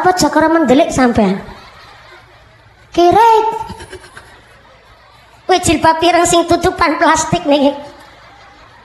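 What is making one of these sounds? A young woman speaks with animation into a microphone over loudspeakers, in bursts.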